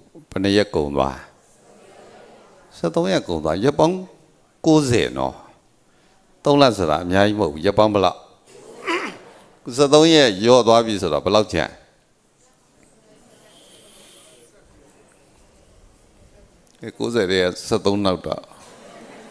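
A middle-aged man speaks calmly into a close microphone, in bursts with pauses.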